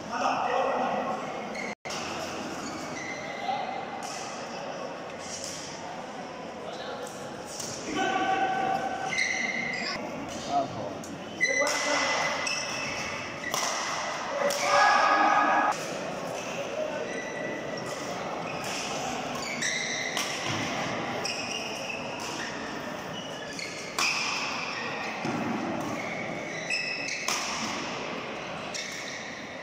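Rackets strike a shuttlecock with sharp pops in a rally.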